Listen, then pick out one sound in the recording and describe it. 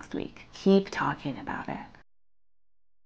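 A man speaks briefly and with emphasis, close by.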